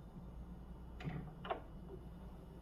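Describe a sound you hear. A turntable's tonearm clunks as it lifts and returns to its rest.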